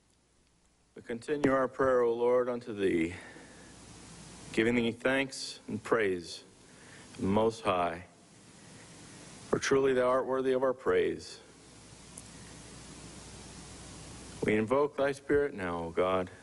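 A middle-aged man prays slowly and solemnly into a microphone.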